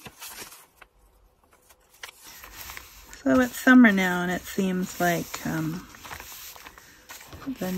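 Hands rub and press paper with a soft rustle.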